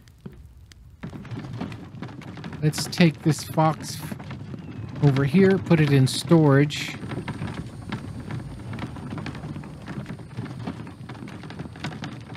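A wooden cart rumbles and rattles as it rolls.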